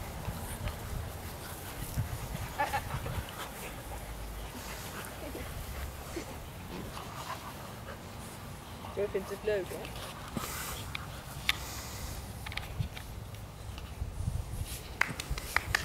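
Puppies scamper over grass.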